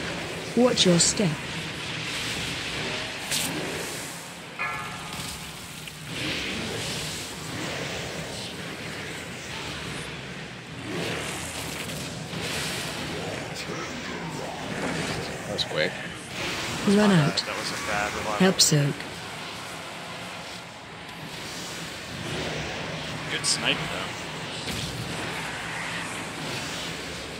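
Magic blasts and combat effects whoosh and crackle in a game.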